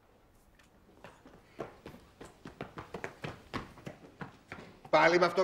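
Children run across cobblestones.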